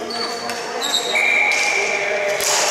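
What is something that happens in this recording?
A referee's whistle blows shortly.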